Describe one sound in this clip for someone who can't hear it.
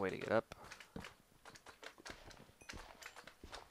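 Slimes squelch as they bounce around.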